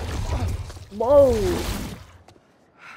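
A young man cries out in pain.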